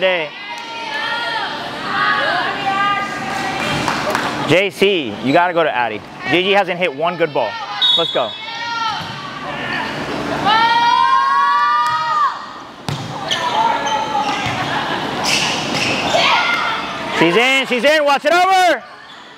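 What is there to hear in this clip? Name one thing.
Young women shout and call out to each other in a large echoing gym.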